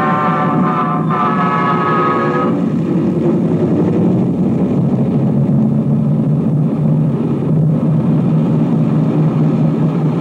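A large crowd roars in an open stadium.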